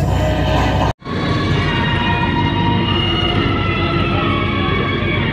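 A young man sings close by.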